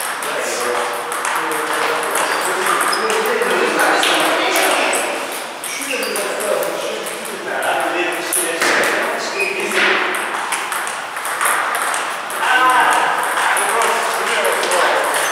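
A table tennis ball clicks back and forth between paddles and the table.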